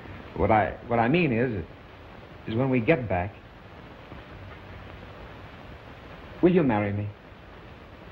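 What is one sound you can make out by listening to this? A man speaks softly and warmly, close by.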